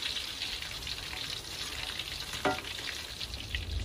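A metal spatula scrapes against a wok.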